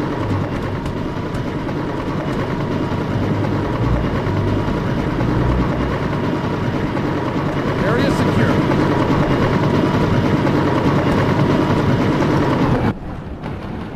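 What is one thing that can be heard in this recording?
A helicopter hovers close by, its rotor thumping loudly.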